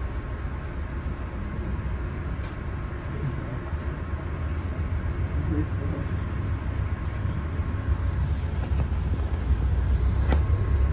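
A train rumbles steadily along the tracks, heard from inside a carriage, growing a little louder.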